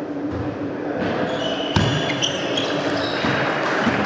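A ping-pong ball clicks sharply against paddles and the table.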